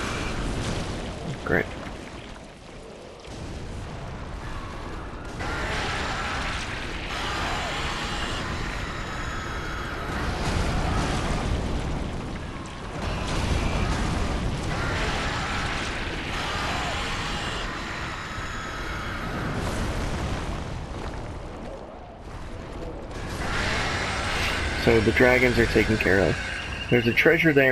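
A sword clangs against a huge creature's hide.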